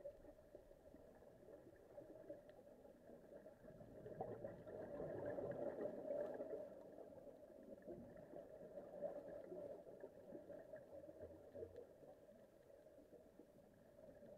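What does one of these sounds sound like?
Air bubbles gurgle and rumble underwater in bursts as a diver breathes out.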